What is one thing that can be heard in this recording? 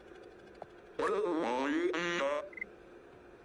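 A robot chatters in quick warbling electronic beeps.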